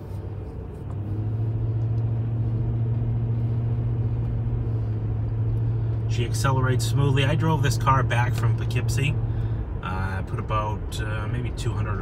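A car engine hums louder as the car drives along a road.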